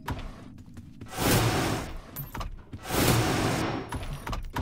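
A monster screeches loudly in short bursts.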